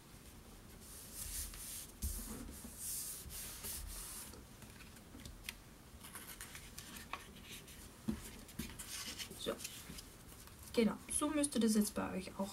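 Paper rustles and slides as it is handled on a table.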